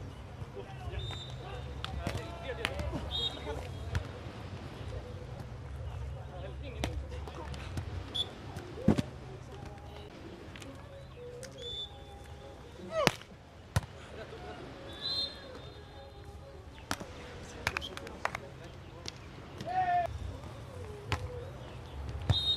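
A referee's whistle blows in short blasts.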